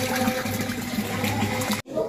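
Water splashes as hands wash something in a tub.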